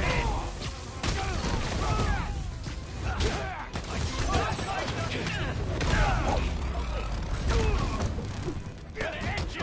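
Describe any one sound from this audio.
Heavy punches and kicks land with thuds and whooshes.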